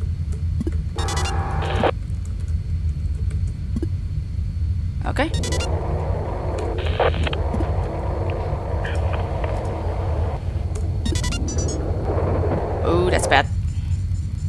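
Electronic chirps and beeps sound in short bursts.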